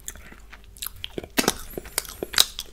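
A man licks his finger with wet mouth sounds.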